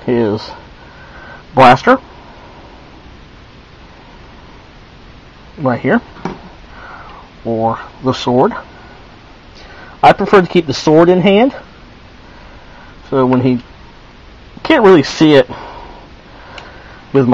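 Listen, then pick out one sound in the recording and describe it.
Plastic toy parts click and snap as they are fitted together.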